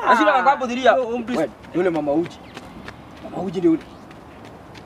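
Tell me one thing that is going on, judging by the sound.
A young man speaks close by, with animation.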